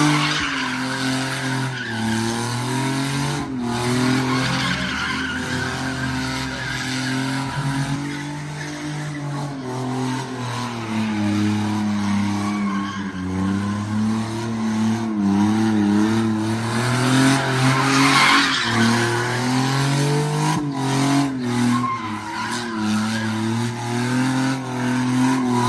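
Tyres screech on asphalt as a car spins.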